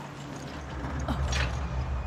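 A metal lever clanks as it is pulled.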